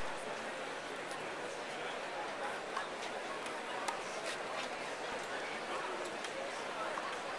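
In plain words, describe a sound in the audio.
Tennis rackets strike a ball with sharp pops.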